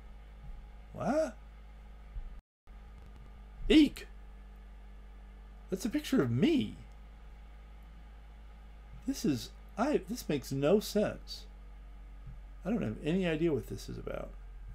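An older man speaks calmly into a close microphone, in short bursts with pauses.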